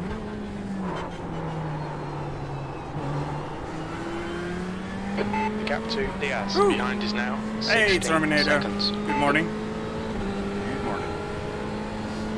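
A racing car engine drones steadily, shifting pitch with gear changes.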